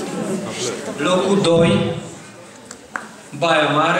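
An elderly man speaks into a microphone in an echoing hall.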